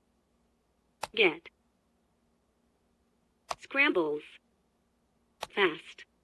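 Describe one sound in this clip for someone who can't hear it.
Keypad buttons click as they are pressed.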